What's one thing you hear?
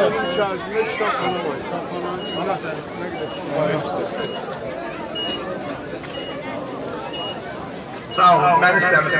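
A woman speaks through a microphone and loudspeaker outdoors.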